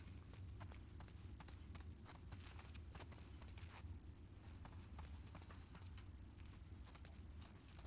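Footsteps shuffle softly.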